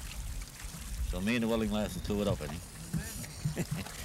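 Water sloshes against a small boat.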